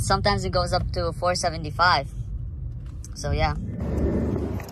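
A car engine hums low while driving in traffic.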